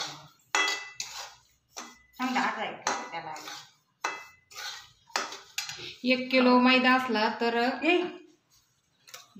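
A metal spatula scrapes and stirs in a pan.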